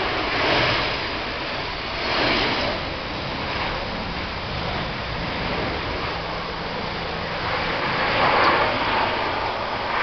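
A jet airliner's engines roar steadily as it rolls along a runway.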